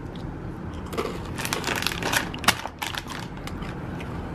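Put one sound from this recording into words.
A plastic snack bag crinkles.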